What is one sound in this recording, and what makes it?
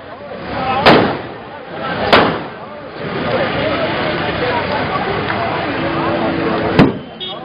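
Firecrackers burst with loud sharp bangs outdoors.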